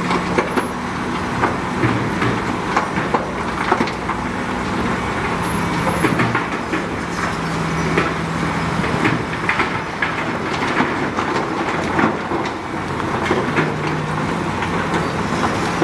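Rocks tumble and clatter out of a tipping truck bed.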